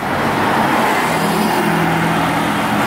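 A bus engine idles with a low drone.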